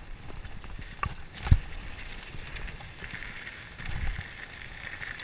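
A bicycle frame rattles and thumps over bumps.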